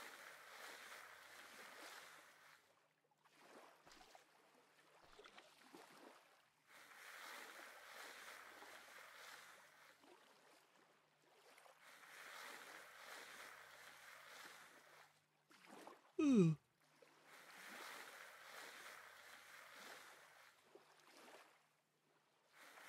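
Water swishes and bubbles as a swimmer moves underwater.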